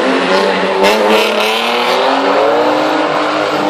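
Tyres screech on wet asphalt.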